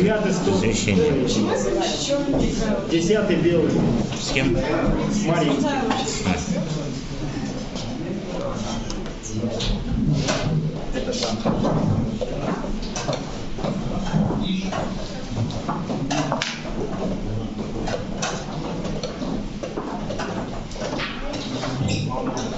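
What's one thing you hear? Men and boys murmur quietly nearby in a busy room.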